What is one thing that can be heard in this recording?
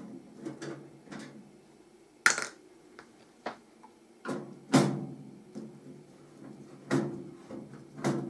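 A screwdriver clicks and scrapes against a metal computer case.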